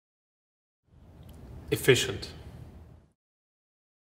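A man says a single word calmly.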